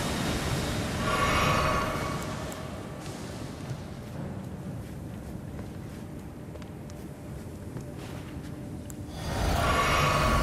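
A bright magical shimmer rings out and fades.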